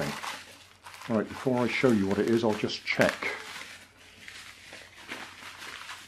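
Plastic bubble wrap crinkles and rustles as it is handled.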